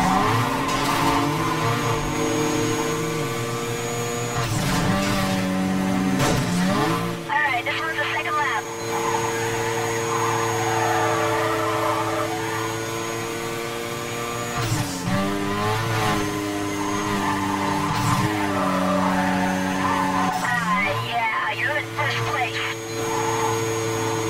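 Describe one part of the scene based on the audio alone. A racing car engine roars at high revs and shifts gears.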